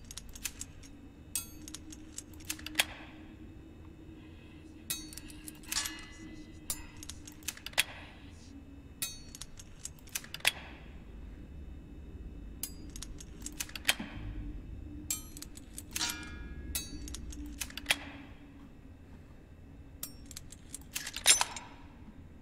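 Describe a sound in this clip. Metal pins click and tick inside a lock as it is picked.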